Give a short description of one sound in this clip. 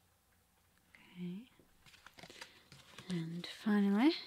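A young woman speaks softly and calmly close to a microphone.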